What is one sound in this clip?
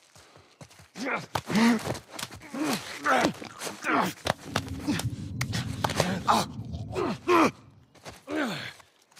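A man grunts and strains while struggling.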